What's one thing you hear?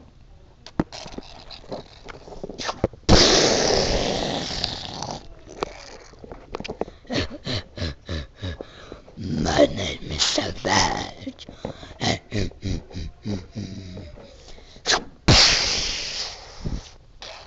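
Fingers rub and knock against a phone close to the microphone.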